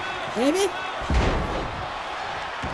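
A heavy body slams onto a wrestling ring mat with a thud.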